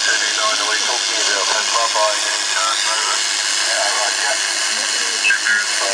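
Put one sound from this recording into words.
A voice plays through a small loudspeaker.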